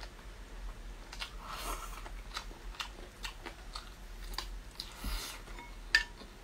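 A woman chews and slurps food noisily close to a microphone.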